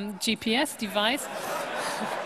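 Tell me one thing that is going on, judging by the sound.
A middle-aged woman speaks into a microphone.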